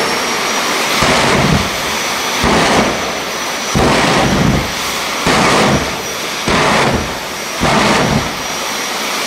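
Flames burst with loud pops from a car's exhaust.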